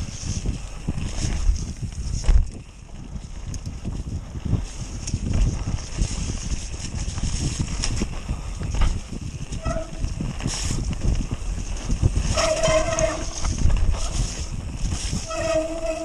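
Wind rushes past a fast-moving rider.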